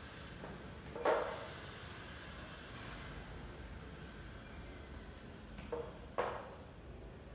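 A wooden ruler knocks against a board.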